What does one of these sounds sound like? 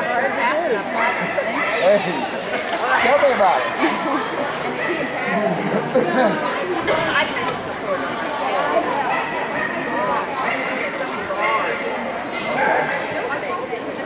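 A man calls out commands to a dog in a large echoing hall.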